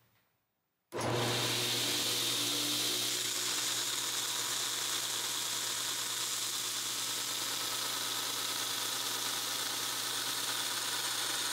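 A belt grinder runs, grinding a steel knife blade.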